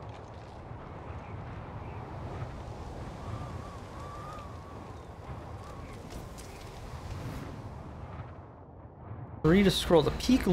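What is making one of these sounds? Wind howls through a snowstorm.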